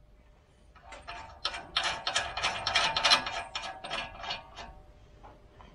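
Metal parts clink and click as a wheel hub is handled.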